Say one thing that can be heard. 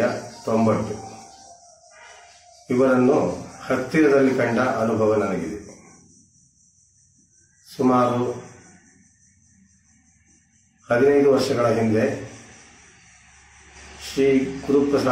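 A man sings in long drawn-out phrases through a microphone.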